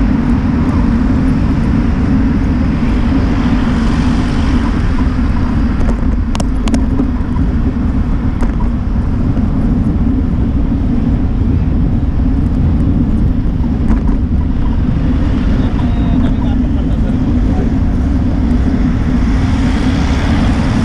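Tyres roll steadily over a road with a low, constant rumble.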